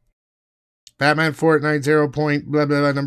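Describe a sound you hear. A man speaks in a high, silly puppet voice.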